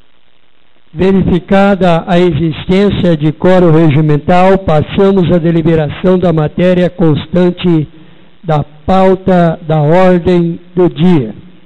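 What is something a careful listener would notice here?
A young man speaks steadily into a microphone over loudspeakers in an echoing hall.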